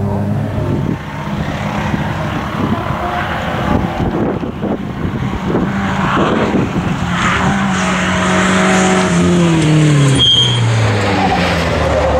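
A second rally car engine roars as it approaches and passes close by.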